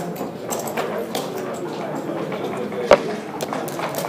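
Dice rattle in a cup and tumble onto a board.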